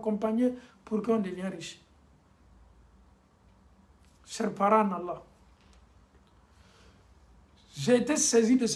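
A man speaks calmly and close to a microphone, with pauses.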